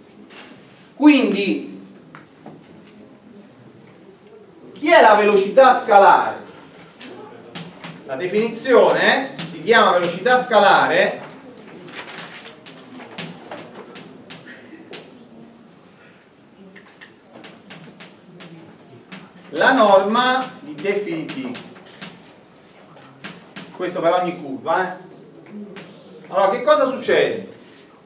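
A middle-aged man lectures with animation.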